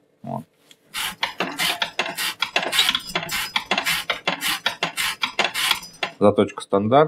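A metal blade scrapes rapidly against a hard surface.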